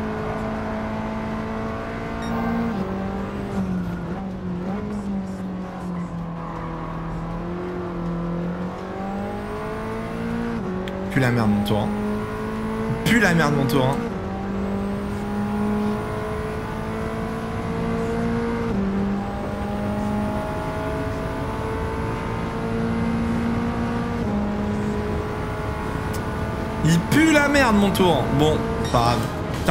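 A car engine roars steadily, climbing in pitch and dropping with each gear change.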